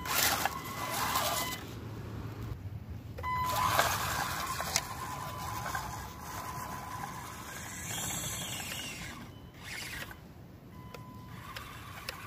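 The electric motor of a radio-controlled crawler truck whines as it crawls over wet leaves and mud.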